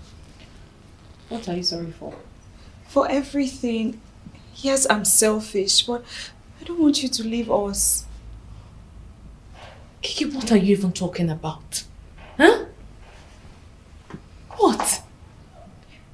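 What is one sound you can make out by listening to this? A second young woman speaks firmly, close by.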